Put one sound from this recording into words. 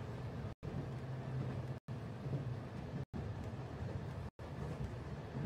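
A train rumbles steadily.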